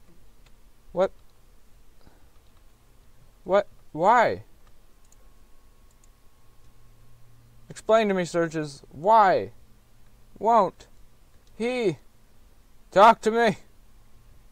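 A man speaks in short, clipped bursts.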